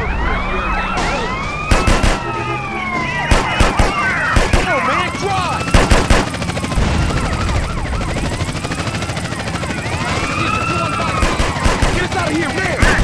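A police siren wails.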